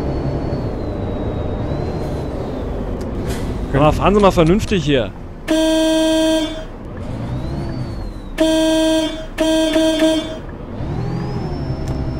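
A bus engine hums steadily while the bus drives along.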